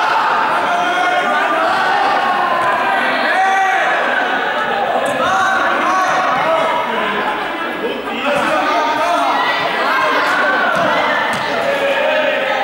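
Many young people chatter and call out at once in a large echoing hall.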